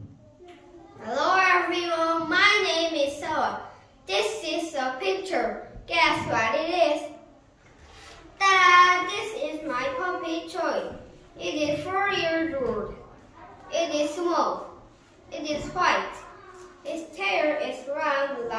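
A young boy speaks clearly and with animation, close by.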